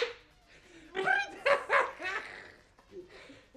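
A young woman gasps and exclaims in surprise.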